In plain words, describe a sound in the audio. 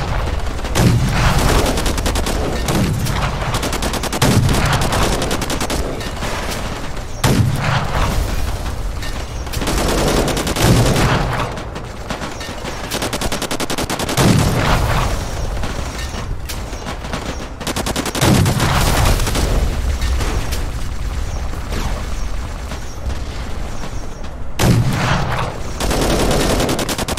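Explosions boom loudly, one after another.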